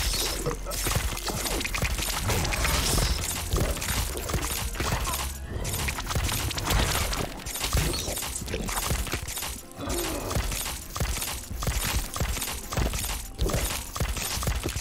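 Video game shots and blasts pop rapidly.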